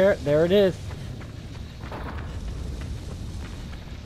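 Footsteps run quickly across the ground.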